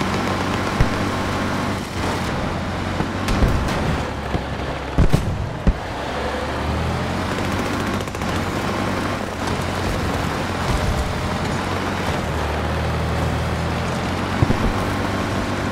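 An armoured vehicle's engine rumbles low and steady as it drives.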